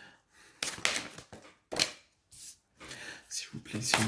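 A card is laid down on a table.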